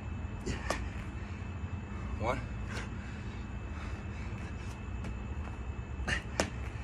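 Sneakers shuffle and thud on an exercise mat.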